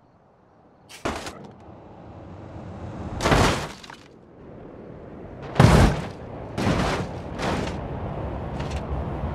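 A car crashes with loud bangs and crunches of metal.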